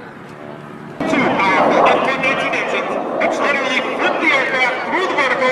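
A jet engine roars loudly as a fighter plane flies overhead.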